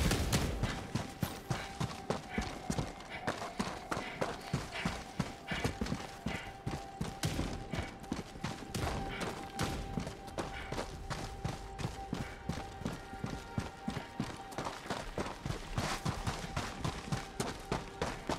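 Quick footsteps crunch over rough, stony ground.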